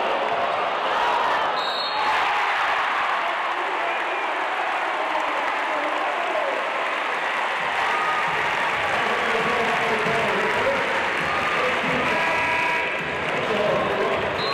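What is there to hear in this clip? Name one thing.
A large crowd cheers and chatters in an echoing arena.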